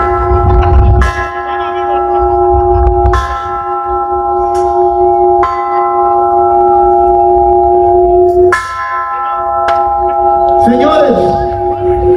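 An electric guitar plays long, ringing chords through loudspeakers, changing every few seconds.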